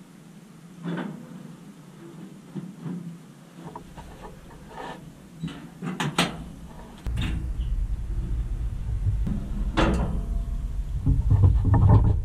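A plastic piece knocks against thin metal walls.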